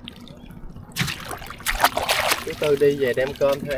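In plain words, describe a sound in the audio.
A man's hands splash in river water while pulling a fishing net.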